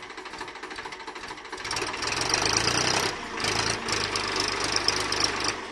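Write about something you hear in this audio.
A tractor engine chugs loudly close by.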